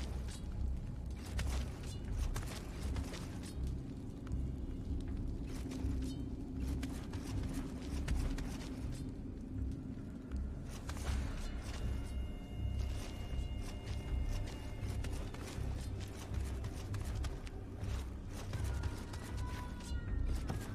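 Footsteps thud on a stone floor at a steady walking pace.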